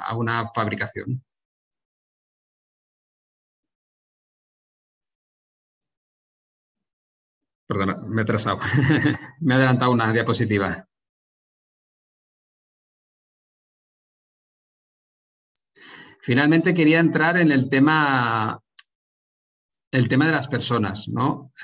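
A man speaks calmly through an online call microphone, in short bursts with pauses.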